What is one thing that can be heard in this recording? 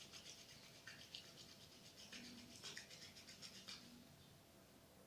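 Hands rub together softly close by.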